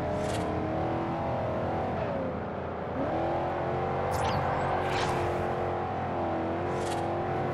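A car engine roars steadily, its pitch dipping and rising as it shifts gears.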